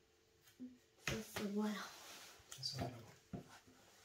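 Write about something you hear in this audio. Cards tap down onto a soft mat.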